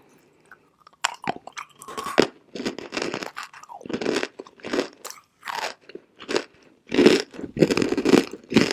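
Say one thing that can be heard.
A young woman crunches and chews chalk loudly close to a microphone.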